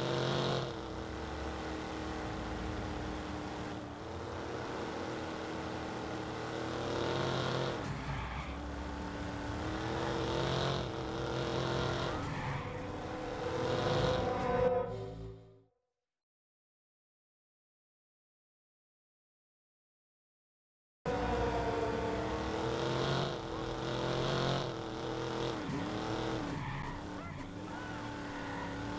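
A car engine hums and revs as the car drives along.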